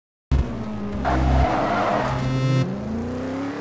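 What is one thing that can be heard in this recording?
Tyres screech and squeal as a car spins its wheels.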